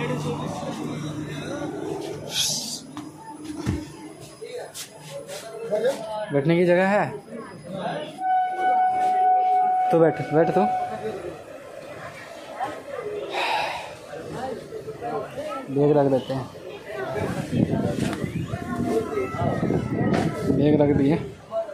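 Men talk loudly nearby, amid busy chatter.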